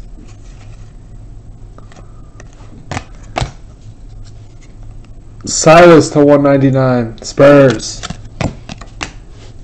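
Trading cards rustle and click as hands shuffle them.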